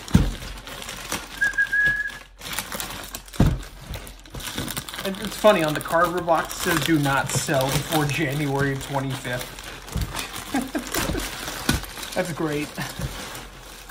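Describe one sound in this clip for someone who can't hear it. A plastic bag crinkles and rustles as it is handled.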